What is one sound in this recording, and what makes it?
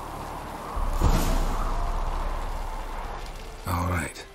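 A torch bursts into flame with a whoosh.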